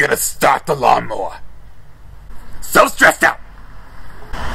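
A person speaks close by with animation.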